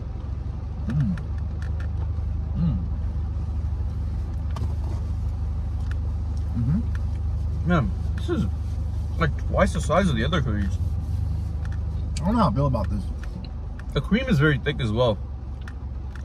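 A second young man murmurs and reacts close by.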